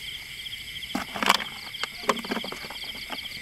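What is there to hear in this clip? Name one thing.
Hands knock and rattle a plastic bucket.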